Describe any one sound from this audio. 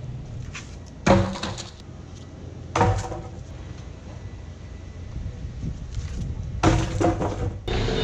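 Wooden boards knock and clatter against a metal frame.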